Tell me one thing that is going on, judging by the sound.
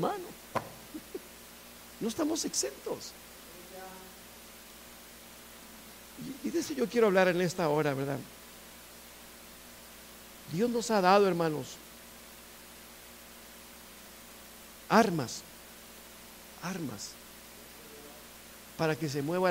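A middle-aged man speaks slowly into a microphone, with long pauses.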